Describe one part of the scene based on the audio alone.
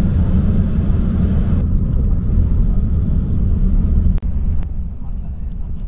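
A car drives along with a low, steady rumble heard from inside.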